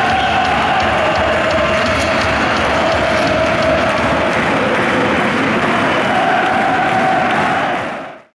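A large crowd cheers loudly in a big echoing arena.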